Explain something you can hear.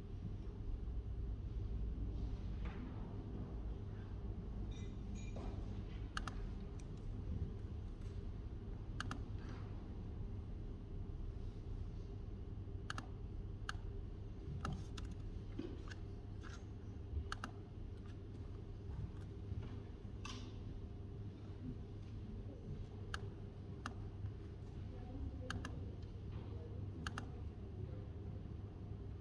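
Fingers tap on a laptop keyboard in quick, uneven bursts.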